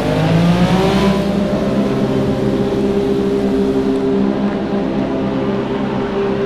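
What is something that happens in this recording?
A racing car engine holds a steady high whine.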